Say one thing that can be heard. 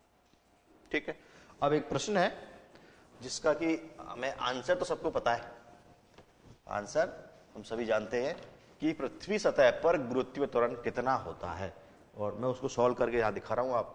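A man speaks with animation close to a microphone, like a teacher explaining.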